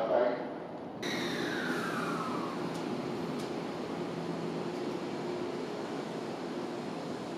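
An electric train hums and whines as it pulls away, close by.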